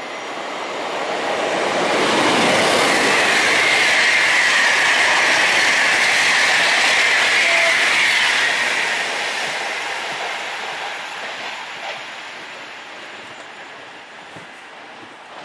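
A train rolls along the rails, its wheels rumbling and its wind rushing, loud at first and slowly fading.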